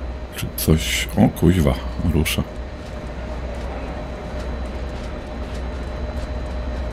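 A train rumbles past at speed with a steady low roar.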